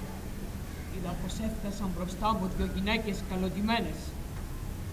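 A man chants in a loud, wavering voice in a large hall.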